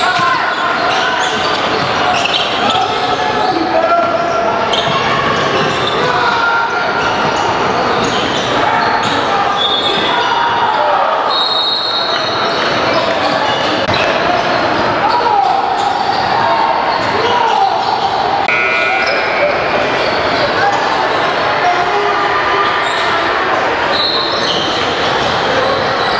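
Basketball shoes squeak sharply on a hardwood court in a large echoing hall.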